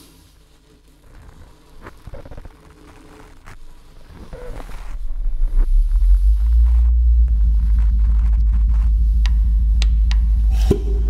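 Small knobs and switches click under fingers.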